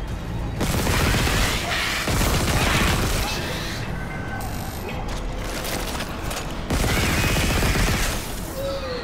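A weapon fires loud, heavy blasts in short bursts.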